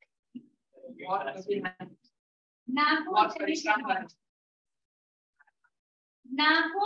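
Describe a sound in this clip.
A woman speaks calmly into a microphone, pausing between phrases.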